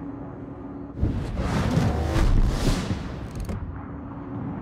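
Heavy naval guns fire with a deep, rumbling boom.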